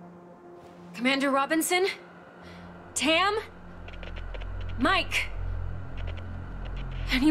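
A young woman calls out urgently, close by.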